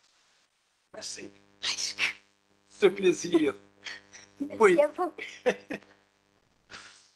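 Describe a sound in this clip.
An older man laughs through a microphone.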